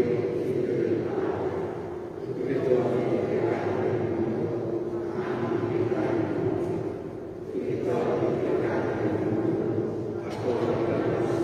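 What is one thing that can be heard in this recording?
A man chants slowly through a microphone in a large, echoing hall.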